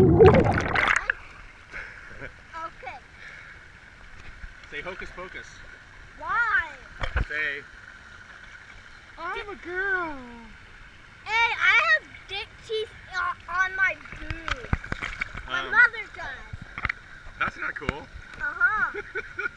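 Water splashes and churns gently.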